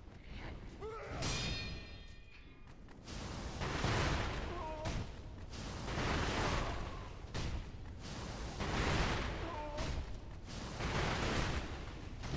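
Steel swords clang sharply together.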